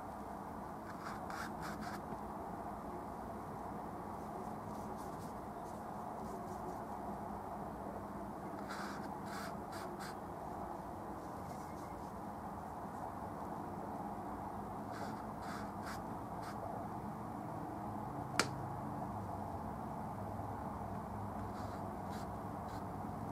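A paintbrush dabs and brushes softly against a canvas.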